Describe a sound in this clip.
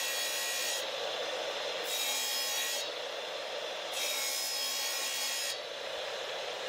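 A tile saw blade whirs as it cuts through tile.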